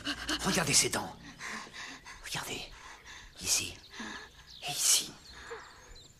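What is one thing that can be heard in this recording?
A young woman gasps and moans breathlessly up close.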